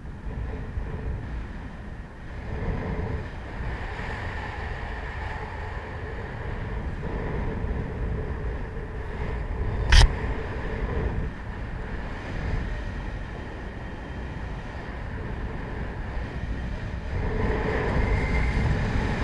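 Wind rushes and buffets steadily past in the open air.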